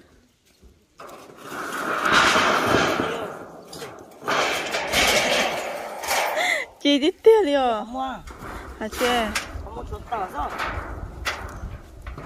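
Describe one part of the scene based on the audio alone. Corrugated metal sheets rattle and scrape as they are dragged and lifted.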